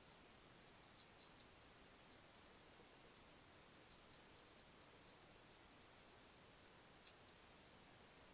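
A hedgehog crunches and laps food close by.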